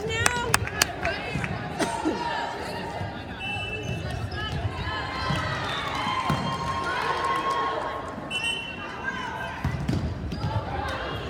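Sneakers squeak on a gym floor in a large echoing hall.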